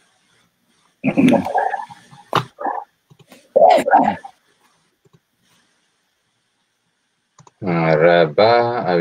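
A middle-aged man speaks over an online call.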